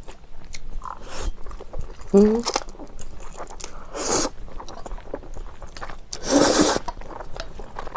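A young woman chews noodles wetly, close to a microphone.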